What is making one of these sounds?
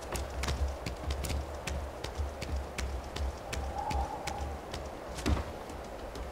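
Footsteps knock on wooden rungs as a figure climbs.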